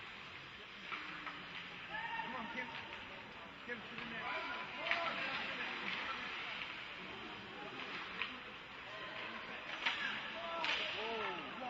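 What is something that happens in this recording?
Hockey sticks clack against a puck on ice, echoing in a large rink.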